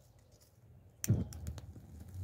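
A torch igniter clicks.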